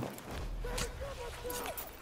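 A blow lands with a heavy thud.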